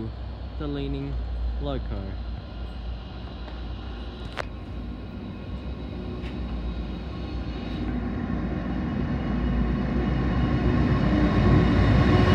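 A diesel freight locomotive rumbles as it approaches.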